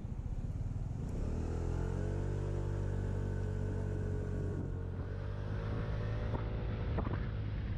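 A motorcycle engine drones and its pitch rises and falls.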